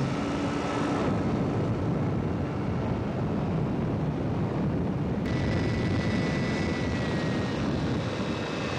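Wind rushes loudly and steadily past during a high flight.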